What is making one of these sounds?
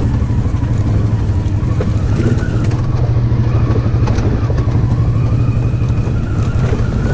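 Tyres crunch and rattle over a rocky dirt track.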